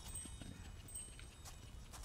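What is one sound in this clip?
Bright sparkling chimes ring out.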